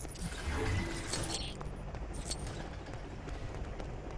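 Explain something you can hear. Quick footsteps patter across hard pavement.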